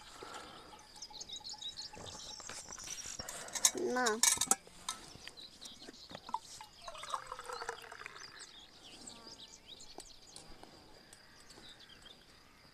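Cutlery and dishes clink softly.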